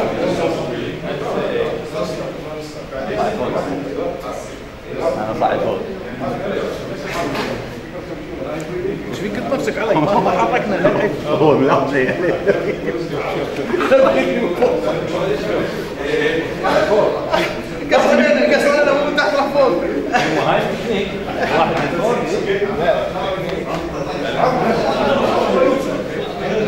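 Several men talk and laugh nearby.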